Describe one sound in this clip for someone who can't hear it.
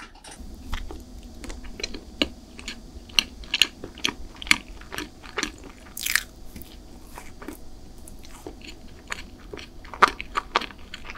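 A woman bites into and chews a chocolate bar close to a microphone, with soft crisp crackles and wet mouth sounds.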